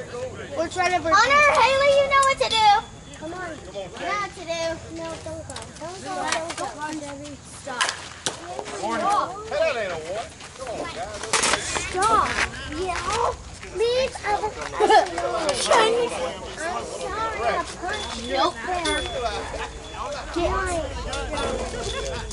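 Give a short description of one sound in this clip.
Men talk and shout nearby, outdoors.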